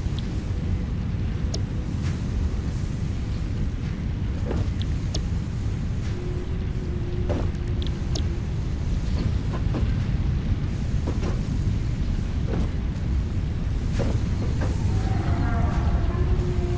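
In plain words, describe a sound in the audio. Machinery hums low and steadily.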